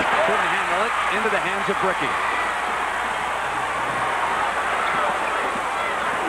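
A large crowd roars and cheers in an echoing arena.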